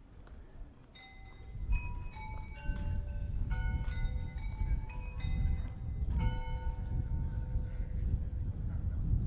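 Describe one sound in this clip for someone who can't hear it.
A street musician plays a slow tune on an instrument.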